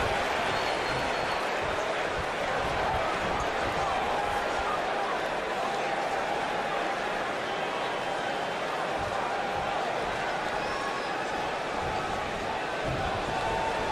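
A large crowd cheers and murmurs steadily throughout.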